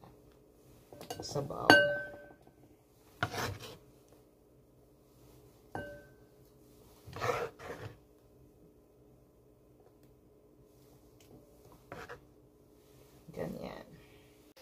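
A knife taps and scrapes on a wooden cutting board.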